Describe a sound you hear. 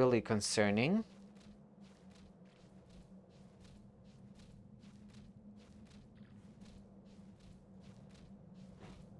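A horse gallops with quick, steady hoofbeats.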